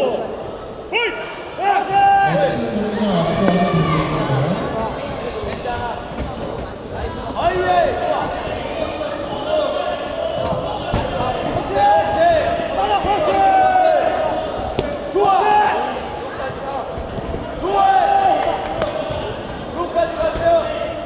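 A crowd of spectators shouts and cheers loudly in a large echoing hall.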